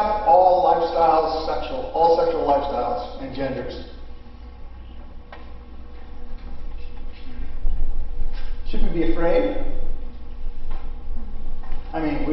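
A middle-aged man speaks calmly through a clip-on microphone.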